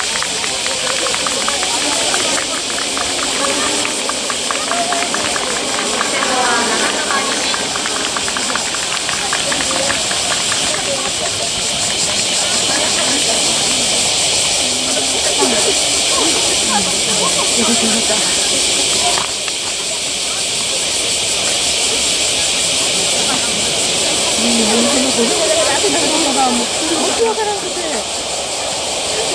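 A distant crowd of spectators chatters and cheers outdoors.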